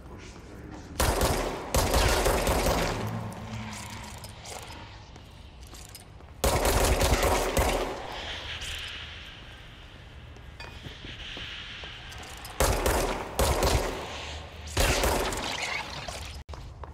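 A pistol fires in sharp bursts that echo loudly.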